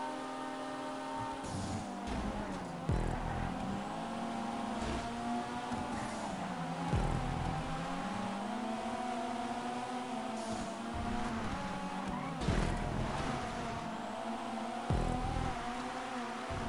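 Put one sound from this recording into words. A sports car engine revs high and shifts gears.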